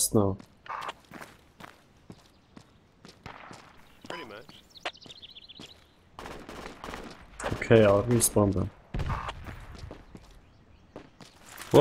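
Footsteps patter on pavement.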